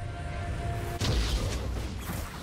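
A fireball blasts with a sharp impact.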